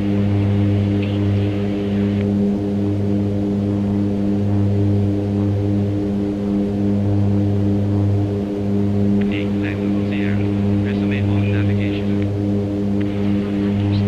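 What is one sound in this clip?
An aircraft engine drones steadily at a low, even pitch.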